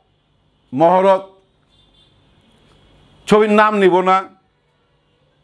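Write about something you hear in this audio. A middle-aged man speaks clearly and close to a microphone, in short phrases.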